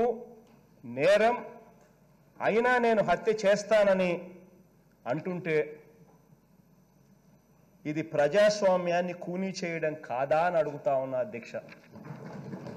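A man speaks with emphasis through a microphone, pausing between phrases.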